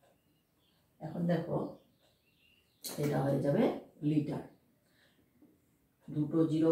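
A woman speaks clearly and calmly close by.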